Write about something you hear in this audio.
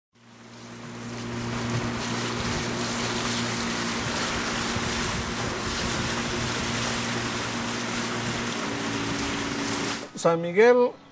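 A boat motor drones steadily.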